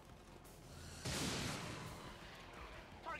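A weapon fires with a hissing blast.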